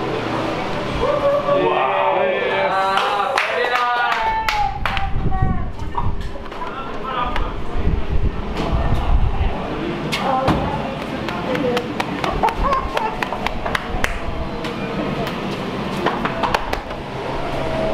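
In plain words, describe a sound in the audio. A small crowd of men and women cheers and shouts excitedly in a reverberant room.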